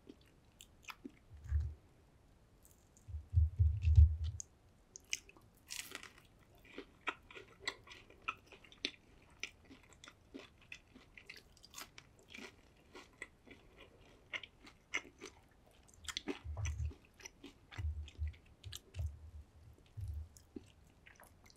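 Fingers handle crispy fried food up close with a faint rustle.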